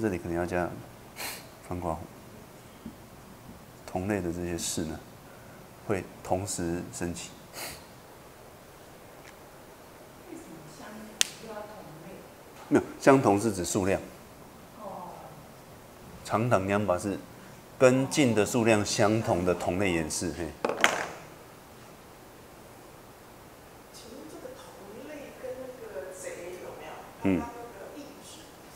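A middle-aged man speaks calmly into a microphone, lecturing.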